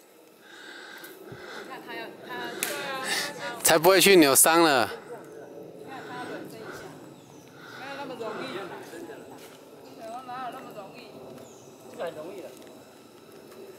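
Several women and girls talk and call out with animation outdoors nearby.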